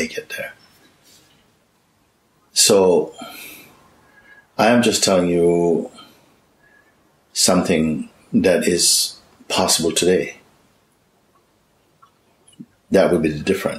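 A man speaks calmly and thoughtfully, close by, with pauses.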